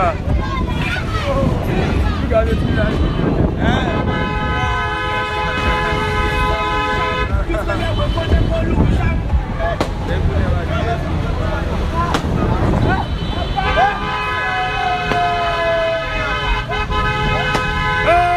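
Motorcycle engines rumble past.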